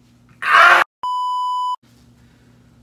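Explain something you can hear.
A steady electronic beep tone sounds.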